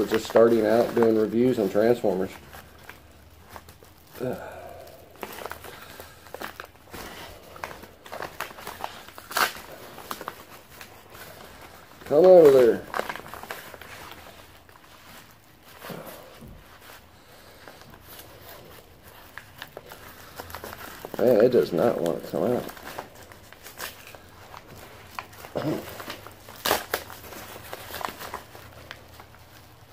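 A paper envelope rustles and crinkles as hands open it.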